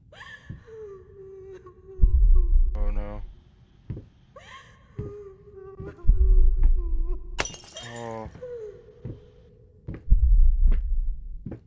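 Footsteps thud slowly on a wooden floor.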